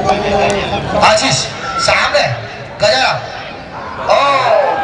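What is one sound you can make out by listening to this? A crowd of onlookers cheers and shouts.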